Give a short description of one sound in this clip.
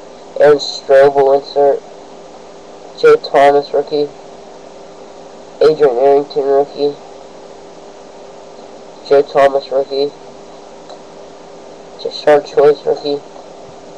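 A young man speaks close to the microphone in short bursts with pauses.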